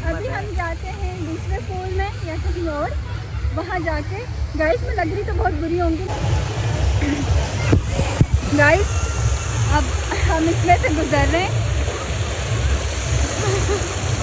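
A young woman talks with animation close to a microphone.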